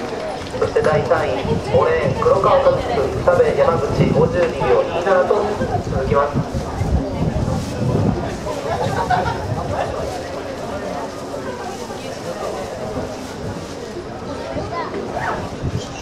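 A crowd of young people chatters and calls out outdoors.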